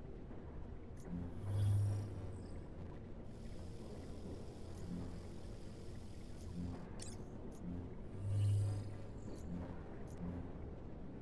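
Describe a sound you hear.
Short electronic whooshes and clicks sound as menus open.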